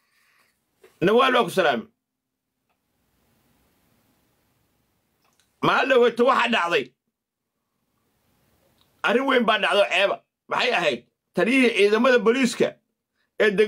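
A man speaks close to a microphone in short, lively bursts with pauses between them.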